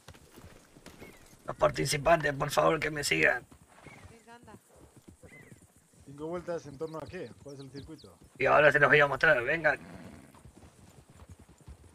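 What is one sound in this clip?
Horses' hooves thud on grass as they walk.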